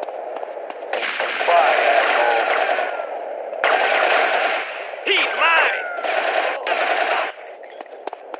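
A rifle fires in rapid bursts, echoing.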